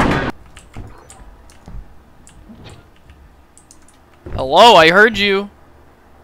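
A locked door handle clicks and rattles.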